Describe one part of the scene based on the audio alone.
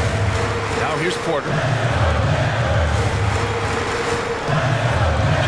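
A large crowd cheers and murmurs steadily in a big echoing arena.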